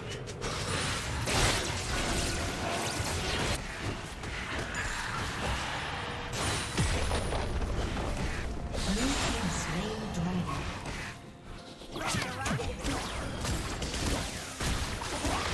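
Magic blasts and impacts crackle in a fantasy battle.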